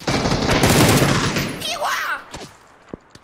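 A smoke grenade bursts with a loud hiss.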